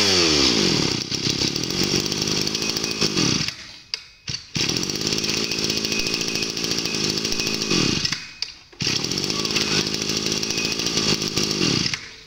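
A small petrol engine rattles and revs unevenly.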